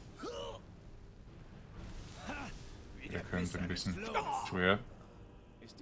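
Fire roars in a burst of flame.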